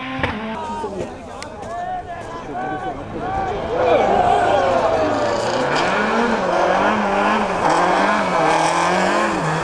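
A rally car engine roars and revs as the car approaches in the night.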